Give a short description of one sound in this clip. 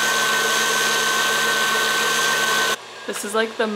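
A stand mixer whirs steadily as its whisk beats.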